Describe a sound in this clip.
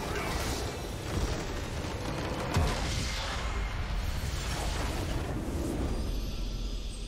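A large crystal structure shatters with a loud crash and rumble.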